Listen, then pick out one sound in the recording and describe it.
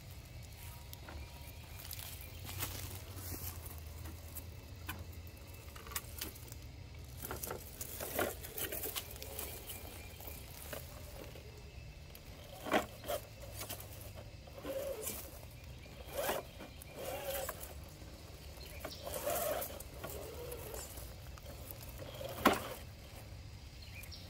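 Plastic tyres scrape and knock against rock.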